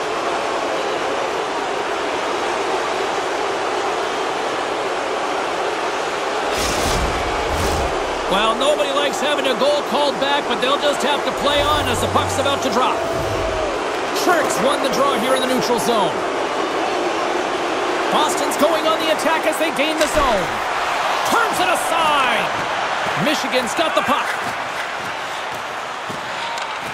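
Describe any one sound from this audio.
A large crowd murmurs and roars steadily in an echoing arena.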